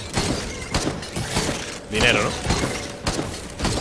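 Game gunfire cracks in quick bursts.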